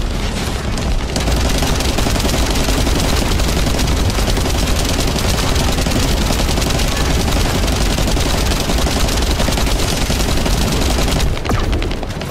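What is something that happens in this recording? Rapid gunfire blasts and crackles.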